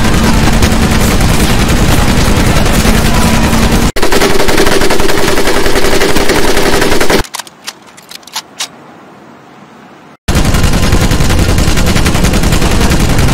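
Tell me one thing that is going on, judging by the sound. A heavy machine gun fires long, rapid bursts.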